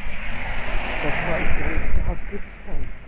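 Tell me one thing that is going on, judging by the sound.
A car drives past close by on a wet road.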